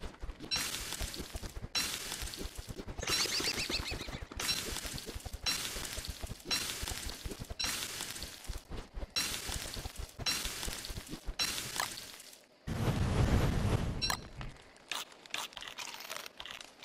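A campfire crackles and pops.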